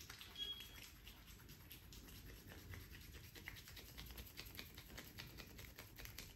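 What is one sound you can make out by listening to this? Fingers rub and scratch through hair close up.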